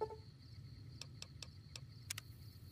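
Menu clicks tick quickly.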